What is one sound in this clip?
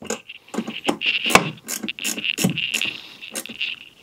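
A wrench clicks on a battery terminal.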